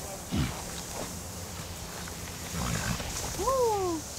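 A horse scrambles up to its feet in sand.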